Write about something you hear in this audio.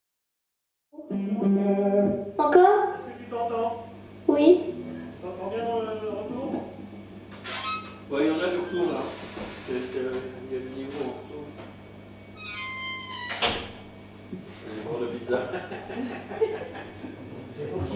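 An electric guitar plays through an amplifier.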